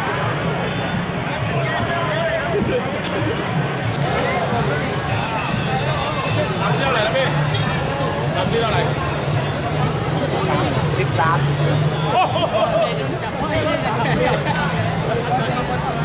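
A large crowd chatters outdoors all around.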